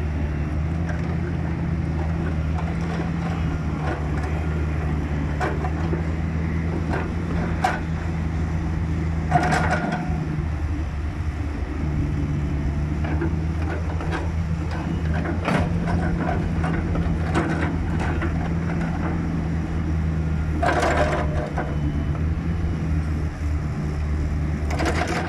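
Hydraulics whine as a digger arm moves.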